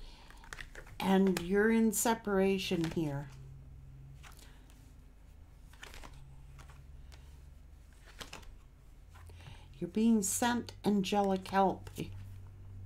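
A middle-aged woman speaks calmly and close to a microphone.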